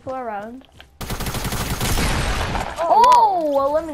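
Gunfire bursts in a video game.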